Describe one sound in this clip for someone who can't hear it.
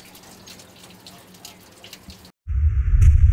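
Water pours and splashes steadily into a basin.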